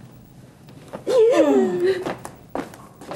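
A middle-aged woman cries and speaks in a wailing voice, close by.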